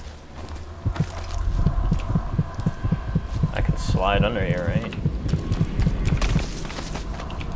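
A heart thumps in a steady, fast rhythm.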